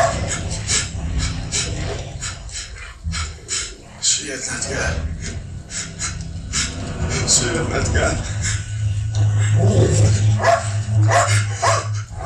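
A man speaks quietly into a phone, outdoors.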